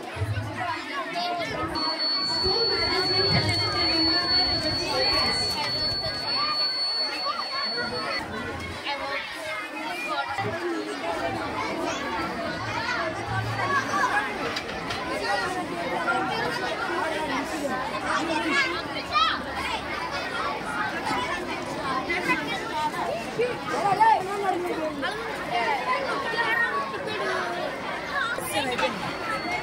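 Many children chatter all around.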